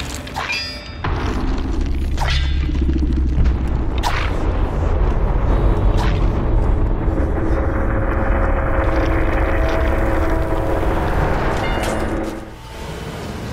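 A deep, loud rumble roars and then cuts off.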